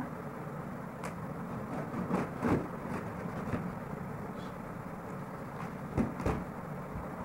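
A cardboard box thumps and rustles as it is handled.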